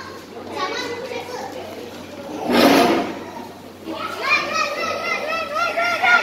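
Young girls talk with animation nearby.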